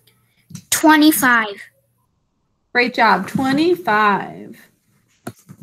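A young child speaks through an online call.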